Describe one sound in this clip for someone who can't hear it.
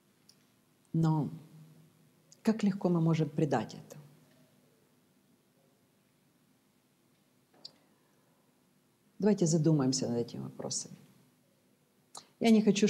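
A middle-aged woman speaks calmly through a microphone, with long pauses.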